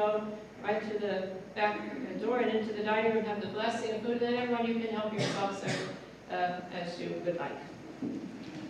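A man chants in a slow, sung voice in an echoing room.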